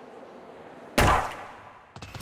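A starting pistol fires once with a sharp crack.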